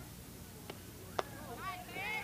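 A bat knocks against a softball once.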